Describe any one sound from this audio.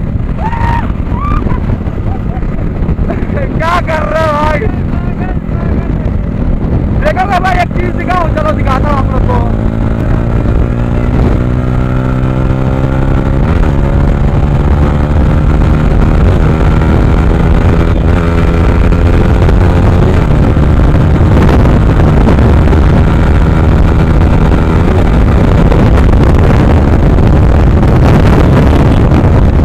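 A motorcycle engine roars close by, revving up and climbing through the gears.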